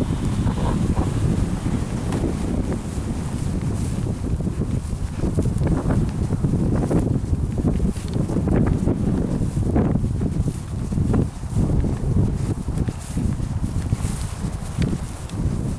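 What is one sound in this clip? Wind gusts and buffets the microphone outdoors.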